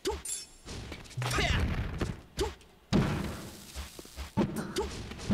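Game characters shout short cries during attacks.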